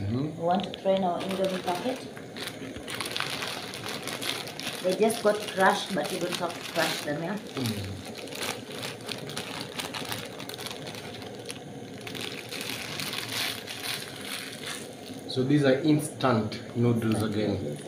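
Water bubbles and hisses at a rolling boil.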